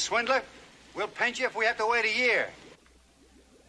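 A younger man speaks tensely close by.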